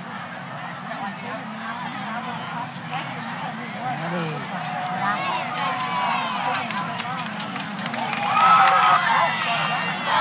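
A crowd murmurs and cheers in the distance outdoors.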